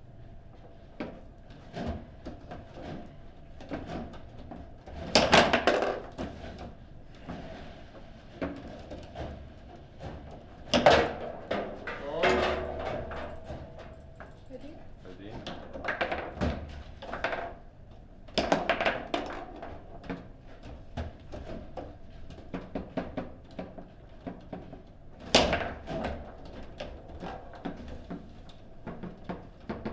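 A plastic ball clacks and bangs against rods and the sides of a table football table.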